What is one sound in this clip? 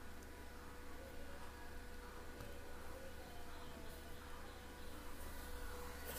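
A charging plug clicks into a phone.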